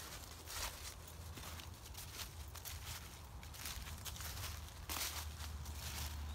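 A dog's paws rustle through dry fallen leaves.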